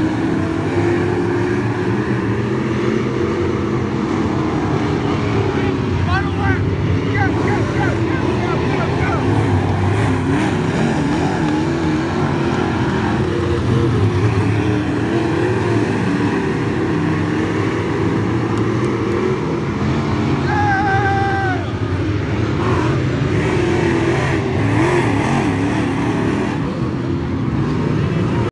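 Race car engines roar loudly around a dirt track outdoors.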